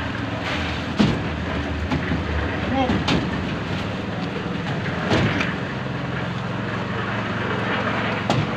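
A bucket knocks against steel rebar.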